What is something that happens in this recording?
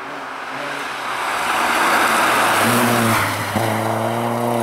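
Tyres hiss and spray over an icy, snowy road.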